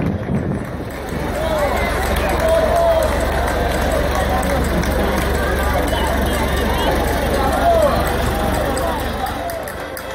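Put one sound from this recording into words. A tractor engine rumbles low as it passes.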